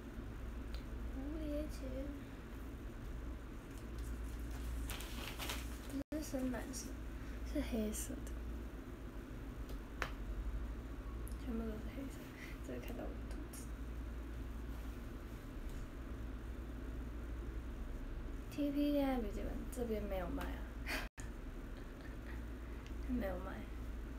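A young woman speaks softly and close by, in short phrases.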